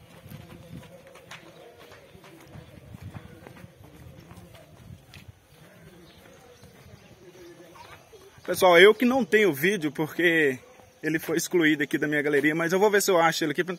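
Footsteps scuff on a dirt path.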